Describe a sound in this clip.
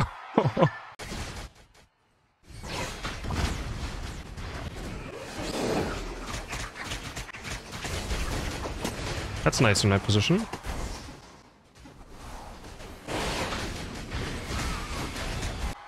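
Game battle effects whoosh and crash.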